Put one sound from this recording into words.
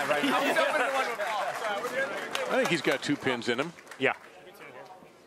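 Young men laugh and chatter close by.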